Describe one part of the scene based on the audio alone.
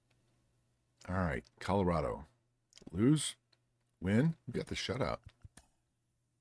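A middle-aged man speaks into a microphone in short bursts with animation.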